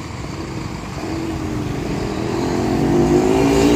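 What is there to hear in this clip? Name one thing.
A truck engine grows louder as it drives past.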